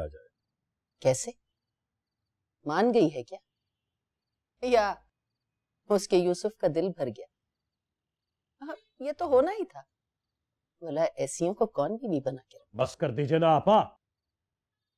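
A middle-aged woman speaks with distress, close by.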